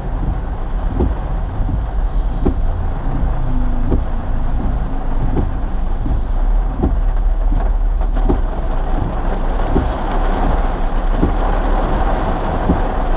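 Rain patters steadily on a car window.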